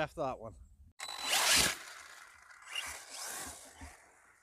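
A small electric motor whines loudly as a remote-control car speeds over grass.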